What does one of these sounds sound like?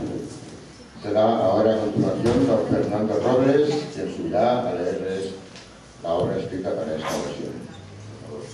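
A woman sings in a large echoing hall.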